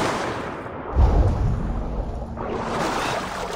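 Muffled underwater rumbling swells and fades.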